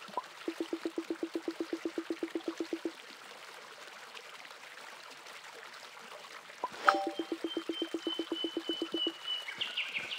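Quick, even electronic blips chirp in a rapid run.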